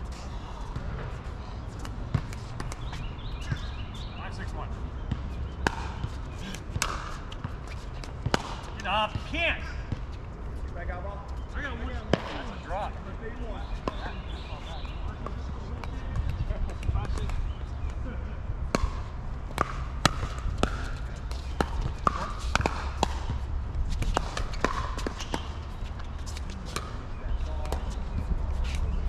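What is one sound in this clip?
Paddles hit a plastic ball with sharp pops, back and forth.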